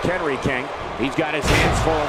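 A wrestler slams onto the mat with a heavy thud.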